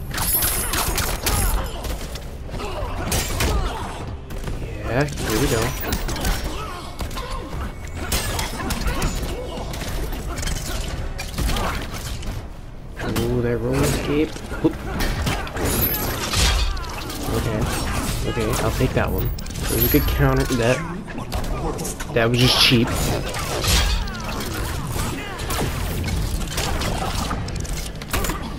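Fighters grunt and shout with effort.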